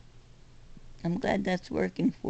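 An adult speaks close to the microphone.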